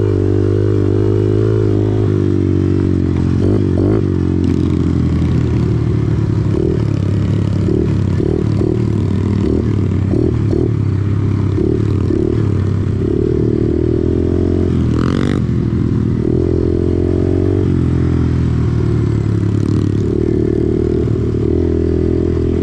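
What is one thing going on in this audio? A second dirt bike engine buzzes ahead.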